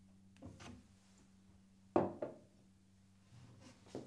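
A glass clinks against a countertop.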